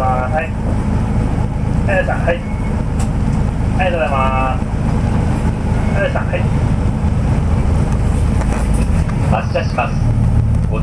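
Traffic hums steadily on a city street.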